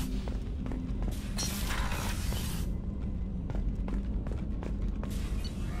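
Footsteps thud on a metal floor.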